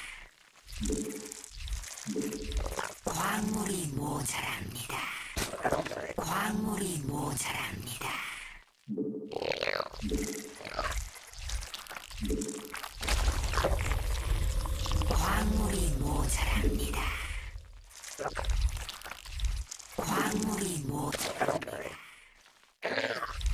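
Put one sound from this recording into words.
Game sound effects chime and buzz in quick bursts.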